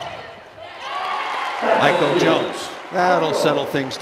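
A large crowd cheers and claps in an echoing arena.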